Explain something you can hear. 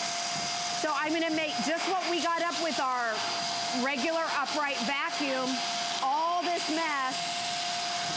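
A woman speaks with animation into a microphone.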